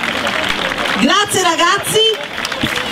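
A woman in the crowd cheers with a high, loud call.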